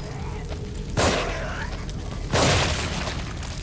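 A revolver fires loud shots.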